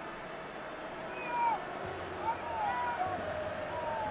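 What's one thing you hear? A stadium crowd cheers louder.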